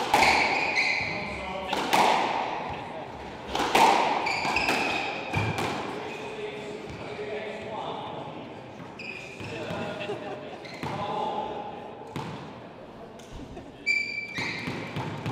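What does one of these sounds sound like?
Rubber shoes squeak sharply on a wooden floor.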